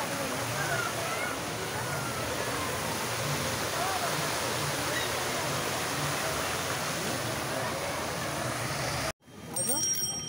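A fountain splashes and roars steadily.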